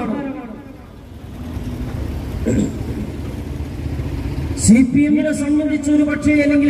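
A man speaks forcefully into a microphone over a loudspeaker, outdoors.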